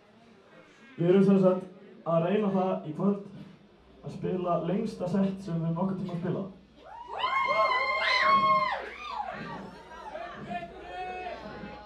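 A young man shouts into a microphone through loudspeakers.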